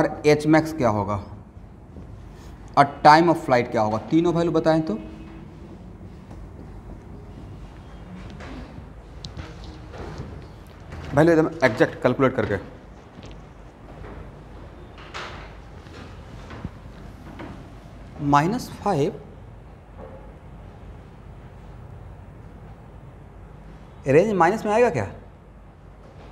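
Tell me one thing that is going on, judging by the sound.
A man speaks in short bursts, explaining calmly.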